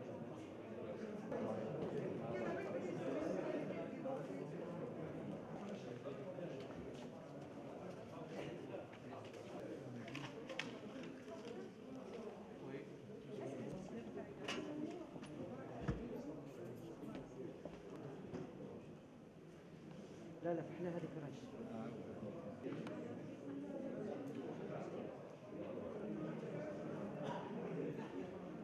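A crowd of men and women murmur and talk in a large hall.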